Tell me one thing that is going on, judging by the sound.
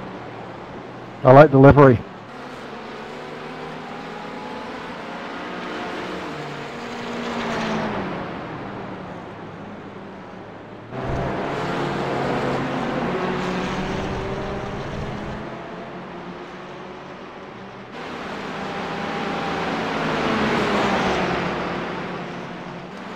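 Racing car engines roar and whine as cars speed past on a track.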